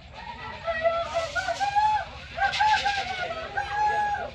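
Dancers' leg rattles shake and rustle in a rhythm.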